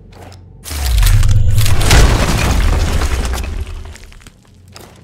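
Rubble and debris tumble and rumble after the crash.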